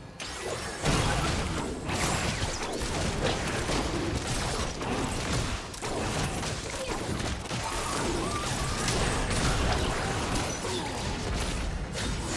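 Magic spells whoosh and crackle as game characters fight.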